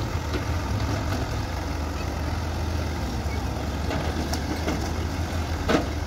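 Dirt and stones thud into a truck bed.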